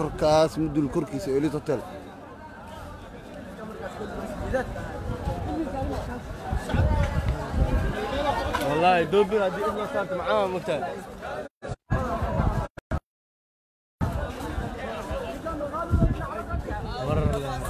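A crowd of men and women talk and shout outdoors, close by.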